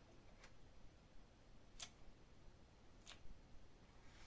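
A push button clicks as it is pressed.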